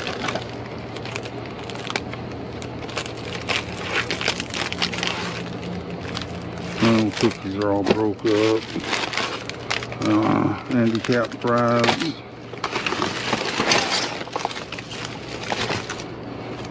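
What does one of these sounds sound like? Plastic wrappers crinkle and rustle as hands dig through them.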